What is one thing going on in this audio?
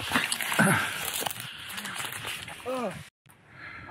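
Shoes scrape on rough concrete.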